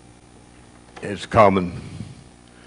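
A man speaks into a microphone in an echoing room.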